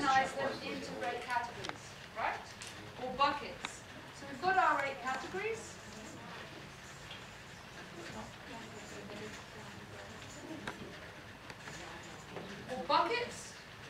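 A middle-aged woman speaks calmly.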